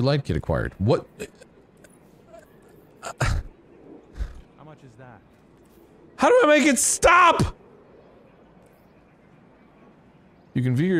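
A man talks with animation close to a microphone, in short bursts.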